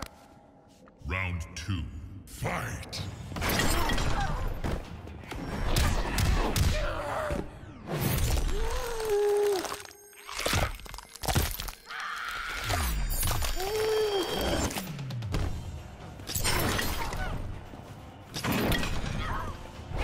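Heavy punches and kicks thud and smack in a fast fight.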